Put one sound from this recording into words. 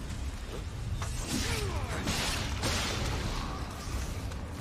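Swords clash and strike in a fight, with loud ringing hits.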